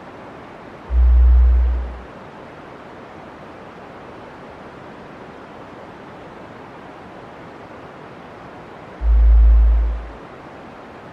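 Hot mud bubbles and plops dully in a pool.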